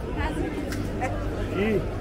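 A man and a woman talk nearby as they walk.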